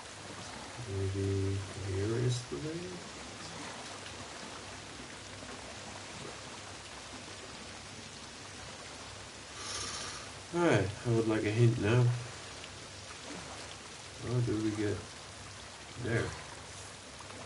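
A man talks casually into a microphone in short bursts.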